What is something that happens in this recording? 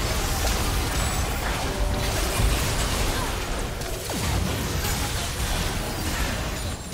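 Game spell effects crackle and boom during a battle.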